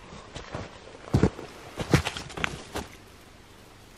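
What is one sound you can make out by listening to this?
Footsteps crunch on snow close by.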